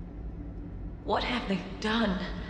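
A young woman speaks quietly and with dismay.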